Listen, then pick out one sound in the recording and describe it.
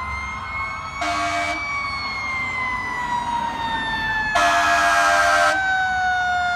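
A fire truck horn blares in short blasts.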